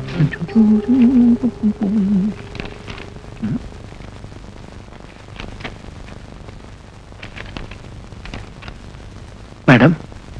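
A small plastic object clicks in a man's hands.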